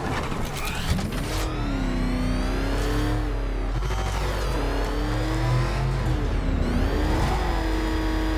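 A powerful car engine roars and revs up and down.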